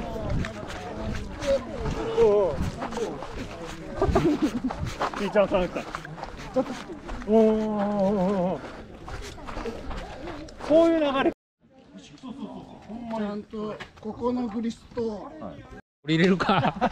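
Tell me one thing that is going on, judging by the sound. Men talk in a relaxed way nearby outdoors.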